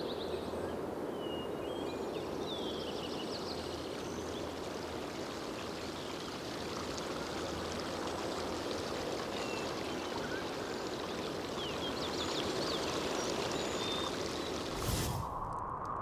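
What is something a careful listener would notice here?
A river rushes steadily over stones.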